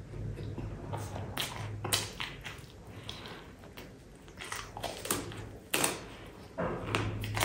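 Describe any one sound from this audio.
A young man chews food noisily close to a microphone.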